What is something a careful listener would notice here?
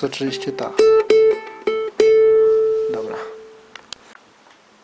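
Ukulele strings are plucked and ring out.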